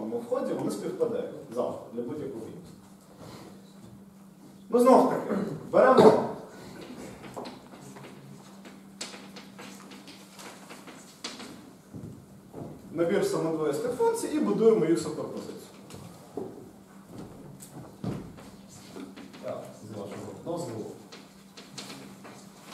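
A man lectures calmly into a microphone in an echoing room.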